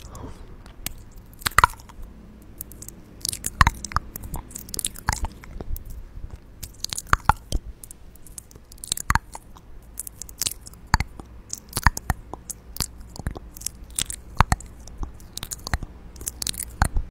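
Fingers tap and brush against a microphone.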